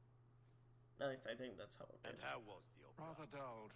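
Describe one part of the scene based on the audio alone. A man asks a question calmly.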